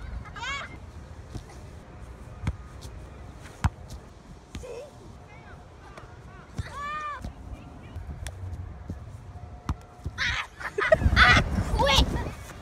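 A ball thuds as it is kicked on grass.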